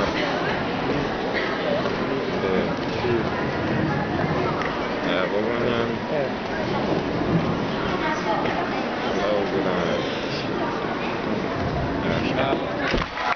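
Hands slap and thump on a pommel horse.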